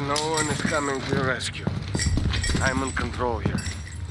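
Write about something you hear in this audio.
Footsteps scuff across a gritty floor.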